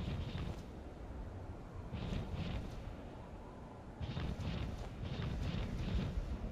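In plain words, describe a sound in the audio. Huge wings beat with heavy, rushing gusts.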